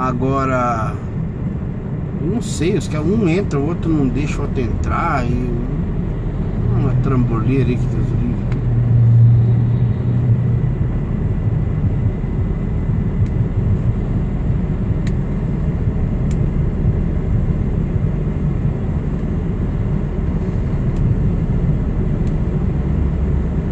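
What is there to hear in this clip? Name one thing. A vehicle engine rumbles steadily from up close.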